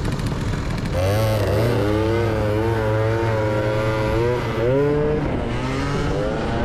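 Wind rushes past while riding.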